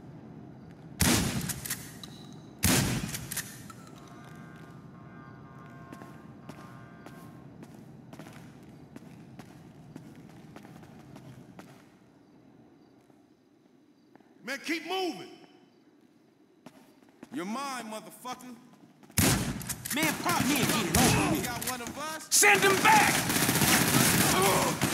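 Loud gunshots ring out in bursts with echoing rumble.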